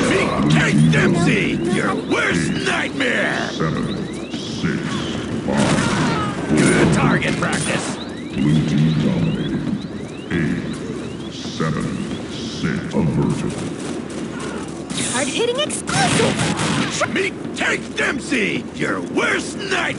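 Video game gunfire cracks and echoes.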